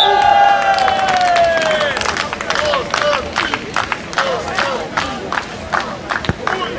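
A crowd claps and applauds outdoors.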